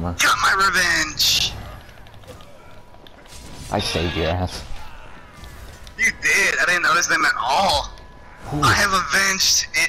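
Magic spells crackle and whoosh during a fight.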